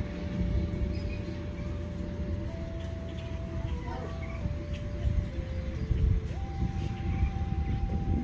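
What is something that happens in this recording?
A small bird chirps faintly.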